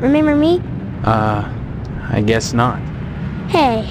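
A young man answers hesitantly.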